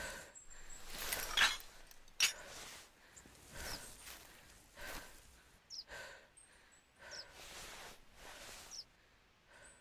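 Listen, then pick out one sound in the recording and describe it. Footsteps rustle steadily through grass and undergrowth.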